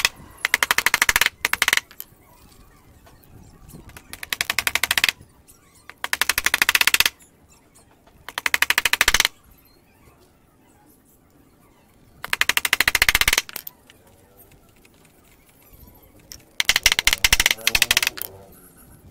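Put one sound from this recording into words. A hammer taps rapidly on a small metal piece in short, loud bursts.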